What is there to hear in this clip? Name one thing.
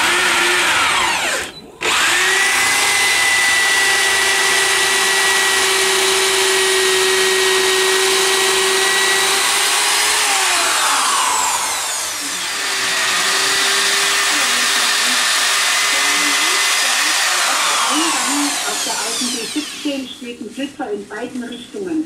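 A power tool whirs loudly and steadily, briefly stopping now and then.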